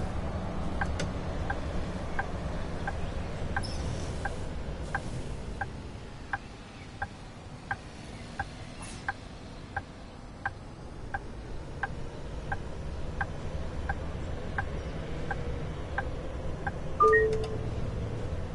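A bus turn signal ticks at an even pace.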